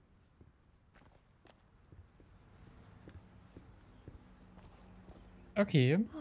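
Footsteps walk slowly across a floor.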